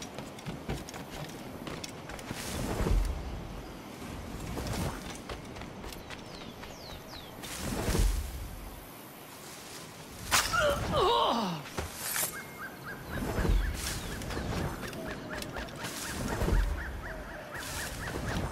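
Footsteps fall quickly on soft ground.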